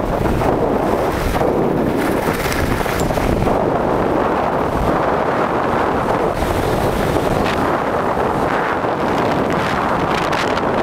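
Skis scrape and hiss steadily over packed snow.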